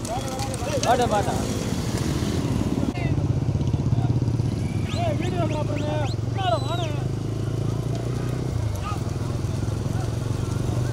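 Motorcycle engines hum steadily close by.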